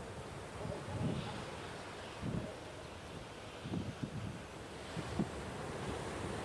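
Waves crash against rocks.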